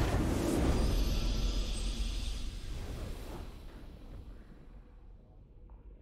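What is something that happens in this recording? A triumphant game fanfare rings out and slowly fades away.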